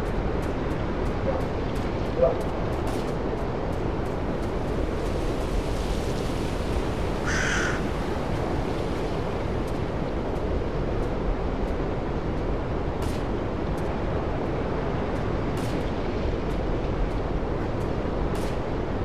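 Wind rustles steadily through forest trees outdoors.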